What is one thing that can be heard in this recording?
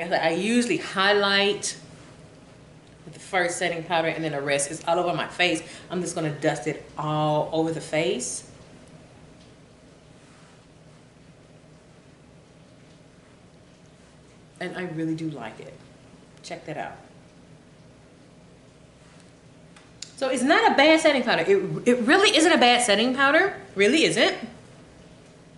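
A woman talks casually and close by, in bursts with pauses.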